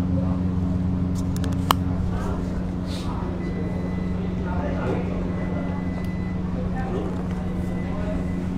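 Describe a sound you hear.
A young woman talks quietly nearby.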